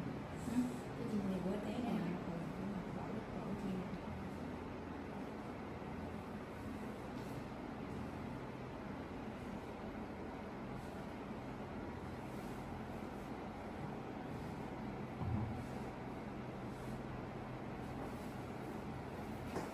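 Hands rub and press on cloth.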